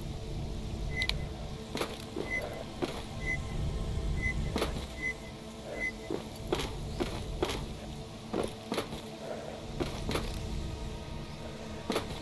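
Footsteps clank on a hollow metal floor.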